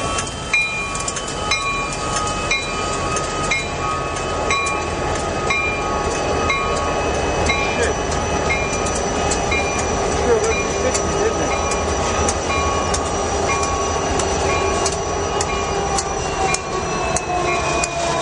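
Diesel locomotives rumble and roar steadily as they pass close by.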